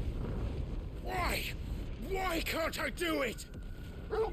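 A young man shouts in anguish, close by.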